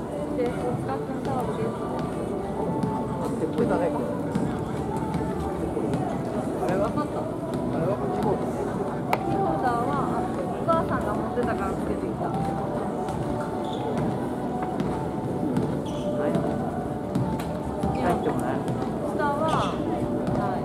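Voices chatter in a large echoing hall.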